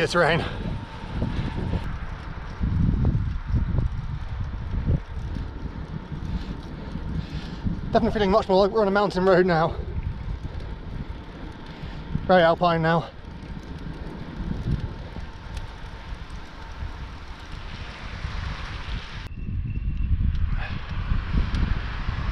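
Wind rushes steadily across the microphone.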